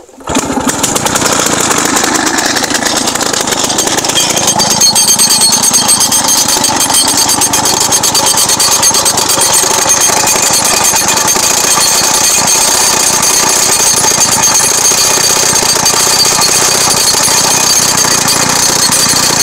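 A petrol rock drill hammers loudly and rapidly into stone.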